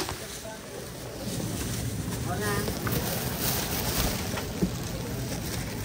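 Plastic bags rustle as a woman handles produce nearby.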